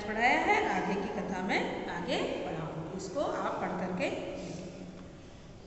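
A middle-aged woman speaks calmly and clearly, close by.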